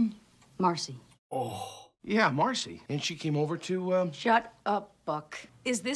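A woman speaks tensely.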